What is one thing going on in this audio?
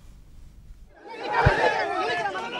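A crowd of men shouts and talks at once nearby.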